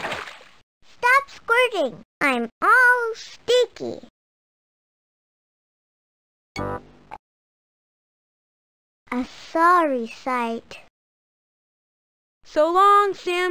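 Small cartoon creatures chatter in high, squeaky voices.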